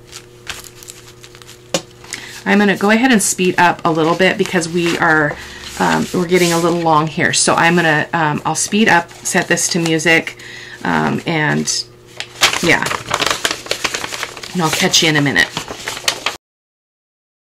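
Paper rustles and slides under hands.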